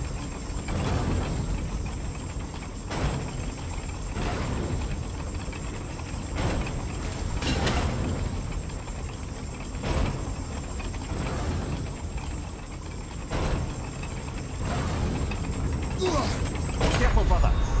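Heavy metal blades whoosh and clang past at regular intervals.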